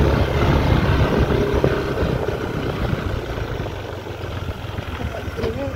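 Wind rushes and rumbles across the microphone outdoors.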